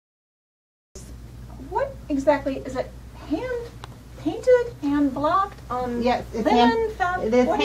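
A woman speaks clearly and brightly close to a microphone.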